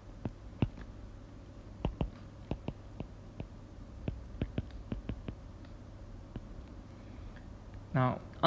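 A stylus taps and clicks on a tablet.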